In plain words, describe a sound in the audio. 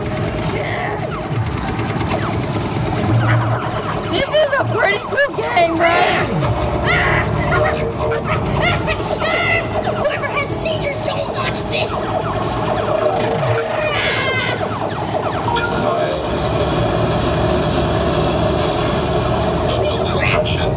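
An arcade game plays electronic zaps and bleeps.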